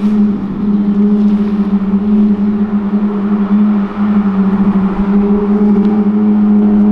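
Car tyres hum on the road.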